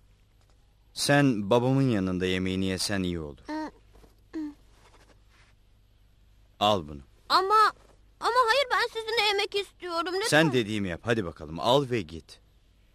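A man speaks calmly and warmly.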